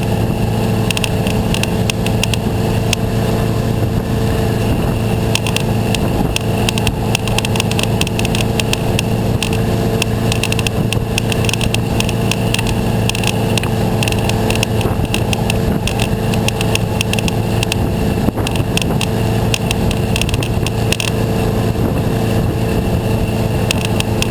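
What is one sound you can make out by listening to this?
A boat engine roars steadily at speed.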